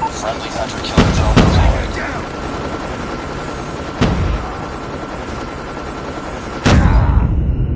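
Rifle shots crack loudly in bursts.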